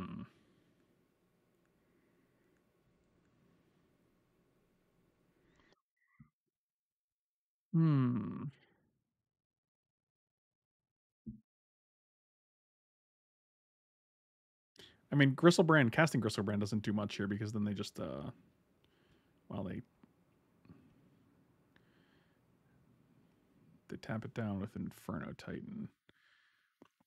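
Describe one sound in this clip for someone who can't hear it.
A middle-aged man talks calmly into a close microphone, in short bursts with pauses.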